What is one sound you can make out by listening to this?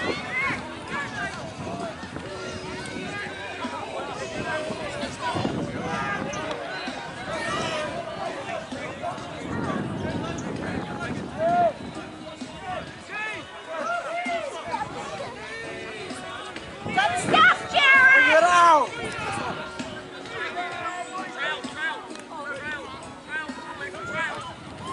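Young players shout to each other on a field.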